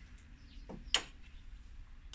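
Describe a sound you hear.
A plastic connector snaps into place.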